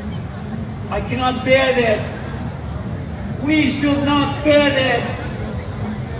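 A crowd chants loudly outdoors.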